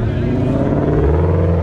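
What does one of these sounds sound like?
A car engine revs up.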